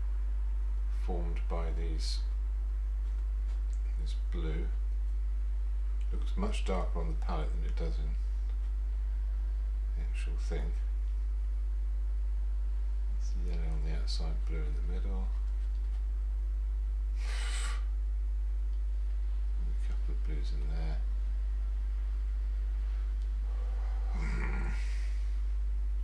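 An older man mumbles quietly to himself, close to a microphone.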